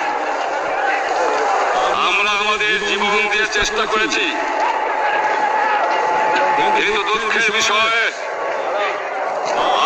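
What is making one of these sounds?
A man speaks forcefully into microphones, heard through loudspeakers outdoors.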